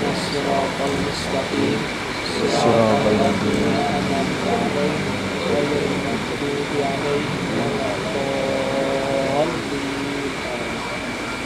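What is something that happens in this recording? A man recites in a steady, chanting voice close to a microphone.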